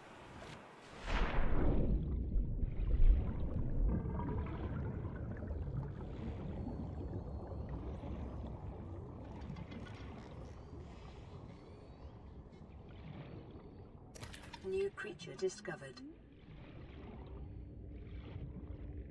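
A low, muffled underwater rumble goes on steadily.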